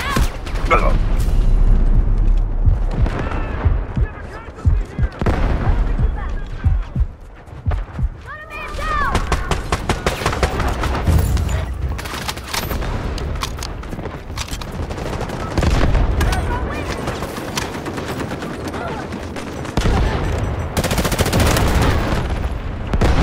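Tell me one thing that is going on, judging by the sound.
Guns fire in rapid bursts of sharp shots.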